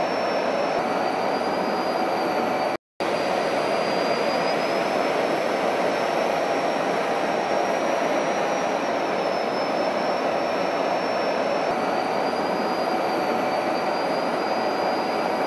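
Jet engines roar steadily close by.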